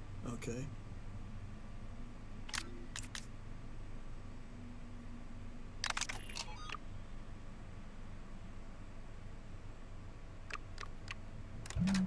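Soft interface clicks sound as menu items are selected.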